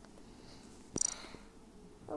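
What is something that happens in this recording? A game menu plays a short bright chime.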